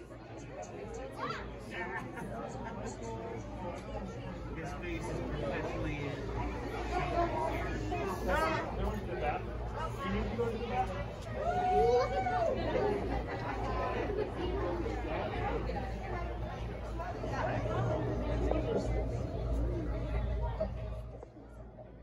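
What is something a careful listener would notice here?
Voices of children and adults chatter and call out nearby in a busy, echoing room.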